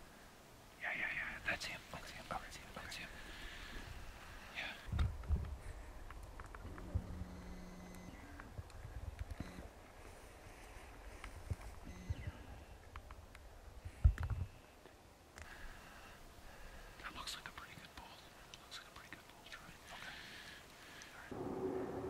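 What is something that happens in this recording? A man whispers close by.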